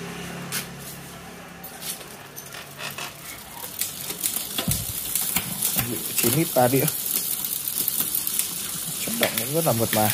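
A bicycle hub ticks and clicks as a rear wheel is turned by hand.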